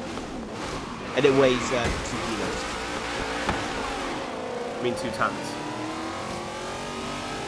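A racing car engine roars and revs up steadily.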